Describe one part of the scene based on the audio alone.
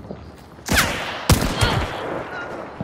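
A gun fires loud, echoing shots.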